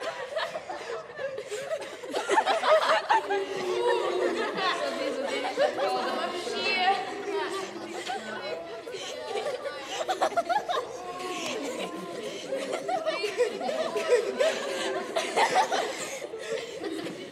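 Young girls laugh and giggle together.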